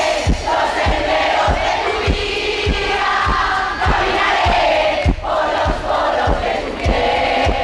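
A drum kit beats out a steady rhythm.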